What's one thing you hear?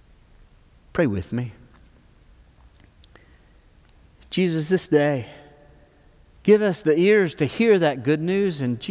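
An older man speaks calmly through a microphone, with pauses.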